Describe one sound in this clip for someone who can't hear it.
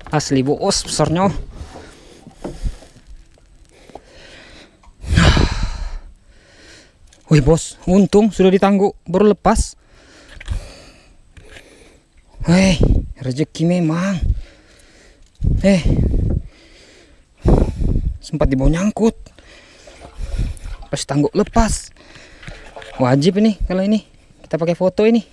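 A man talks close to the microphone with animation, in bursts and pauses.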